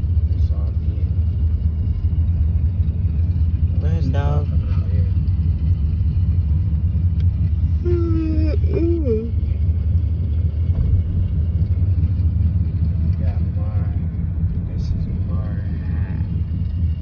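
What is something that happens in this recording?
A car engine hums and the tyres rumble steadily on the road.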